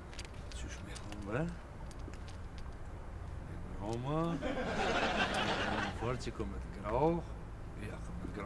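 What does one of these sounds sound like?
A young man talks with a laugh in his voice, close by.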